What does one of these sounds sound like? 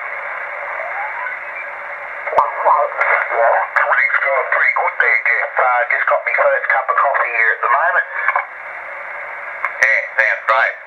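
A radio hisses with static.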